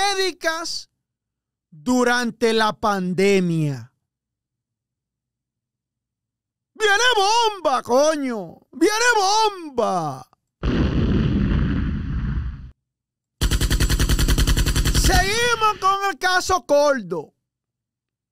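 A man speaks with animation into a close microphone, with pauses.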